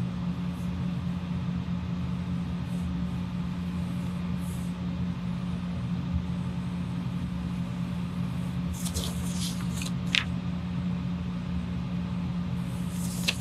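A pen scratches and squeaks on paper.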